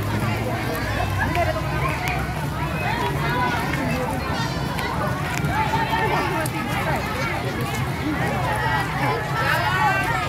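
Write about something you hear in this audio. Children shout and call out in high voices.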